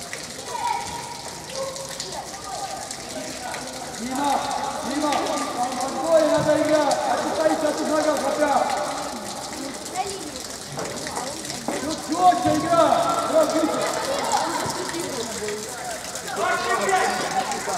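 Young men shout to each other across a large echoing indoor hall.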